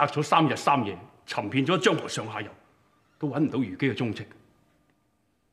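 A man speaks firmly.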